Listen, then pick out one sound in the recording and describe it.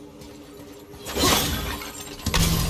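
An axe swings through the air with a sharp whoosh.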